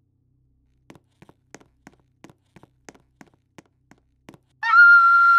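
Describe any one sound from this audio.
Light footsteps tap quickly on a hard floor.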